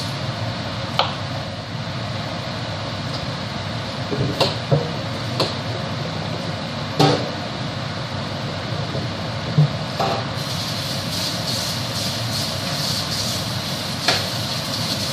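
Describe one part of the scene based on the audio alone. A knife knocks now and then against a cutting board.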